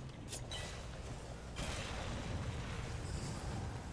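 A blade swings through the air with a whoosh.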